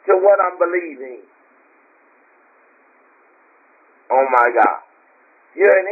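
A woman speaks through a microphone with animation, in short bursts between pauses.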